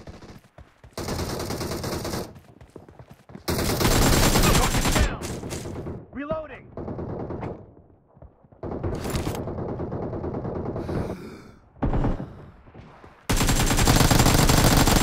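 Rapid rifle fire rattles in short, loud bursts.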